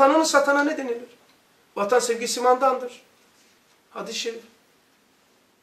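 An elderly man speaks calmly and clearly into a close microphone, in short phrases with pauses.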